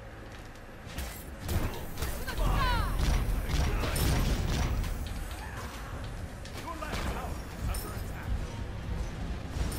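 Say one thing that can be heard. Game combat effects clash and whoosh in quick bursts.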